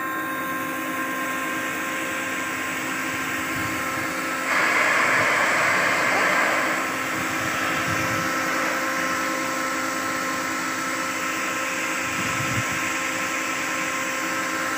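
A rotary screw air compressor runs with a steady hum and whine.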